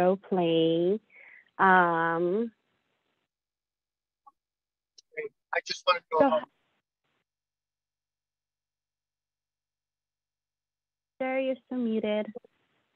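A young woman speaks through an online call.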